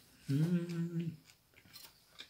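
A man hums briefly, close by.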